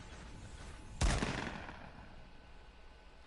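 A gunshot booms and echoes away.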